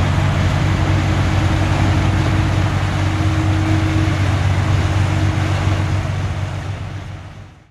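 A boat engine rumbles steadily, then fades away.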